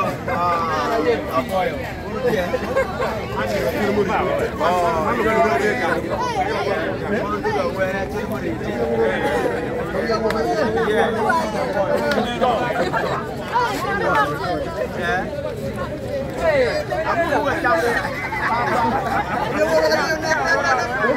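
A crowd of young men and women chatter, cheer and sing excitedly close by, outdoors.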